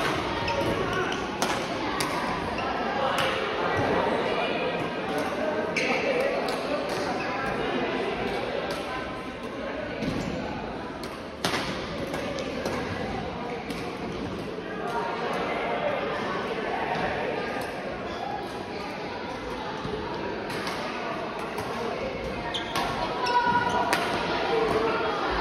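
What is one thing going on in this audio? Young men talk and call out across the hall.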